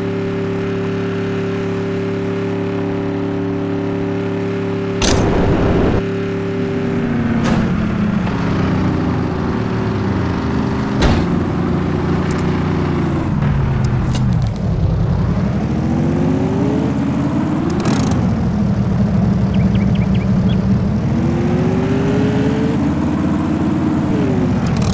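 A heavy off-road truck engine drones and revs up and down.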